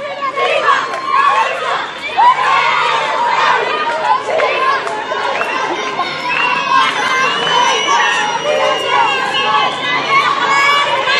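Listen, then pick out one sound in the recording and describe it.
A crowd of men and women shouts and chants together outdoors.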